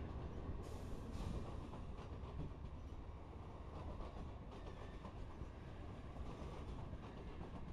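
A passenger train rumbles past close by, its wheels clattering on the rails.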